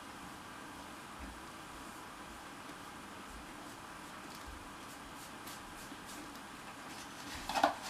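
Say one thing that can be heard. Paper bills rustle and flick as they are counted.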